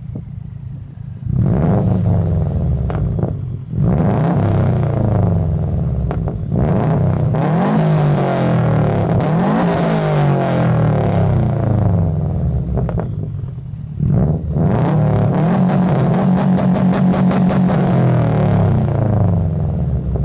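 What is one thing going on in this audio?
A car engine idles with a deep exhaust rumble.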